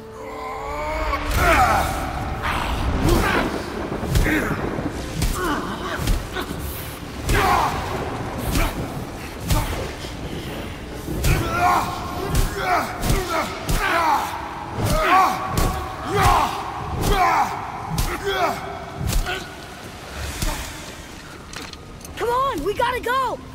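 Heavy blows and impacts thud in a fight.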